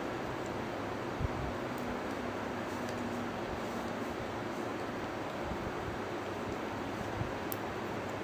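A metal crochet hook softly clicks and scrapes against yarn.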